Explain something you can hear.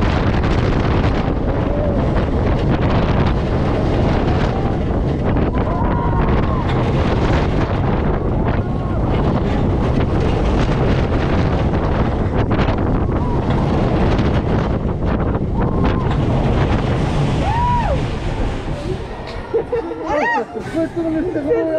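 A roller coaster train rumbles and rattles along its track.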